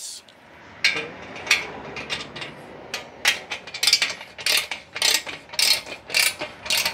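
A ratchet wrench clicks rapidly as it tightens a bolt.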